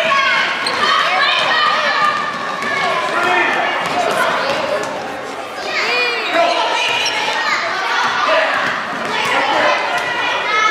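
A crowd of children and adults shouts and cheers loudly in an echoing gym.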